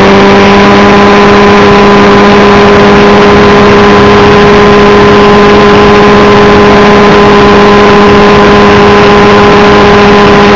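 Rotor blades whir and buzz rapidly overhead.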